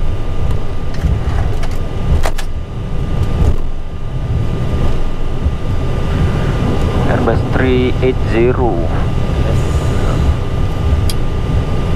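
Aircraft tyres thump over joints in the pavement.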